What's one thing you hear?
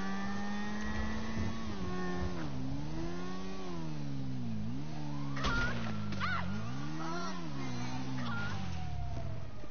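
A motorbike engine hums and revs up and down as the bike rides along.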